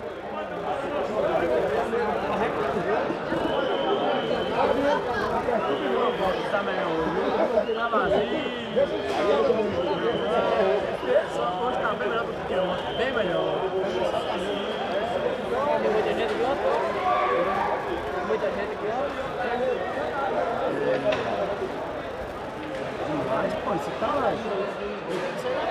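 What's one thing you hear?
A crowd of men chatters and talks loudly all around.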